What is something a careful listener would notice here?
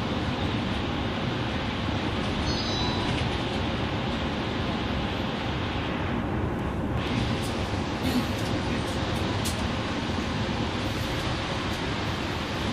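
A bus engine rumbles steadily while driving along a highway.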